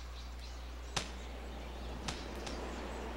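A golf ball thuds and bounces on grass.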